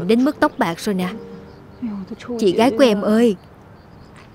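A young woman speaks up close.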